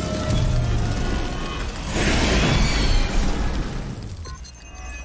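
Video game combat effects clash and whoosh.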